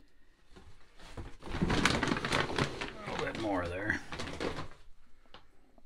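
Grain rustles and rattles as a plastic scoop digs into a sack.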